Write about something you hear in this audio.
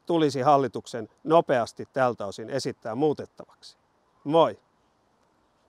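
An elderly man speaks calmly and close into a microphone.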